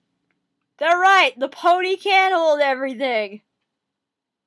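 A young woman speaks close by in a high, playful voice.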